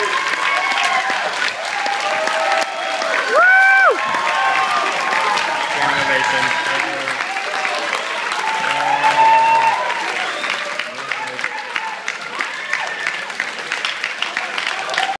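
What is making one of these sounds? A large crowd cheers and chatters loudly in an echoing hall.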